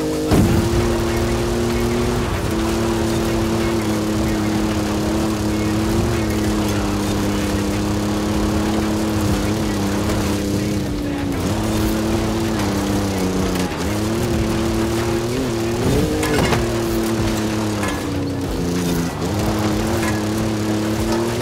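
An engine drones steadily, rising and dipping with gear changes.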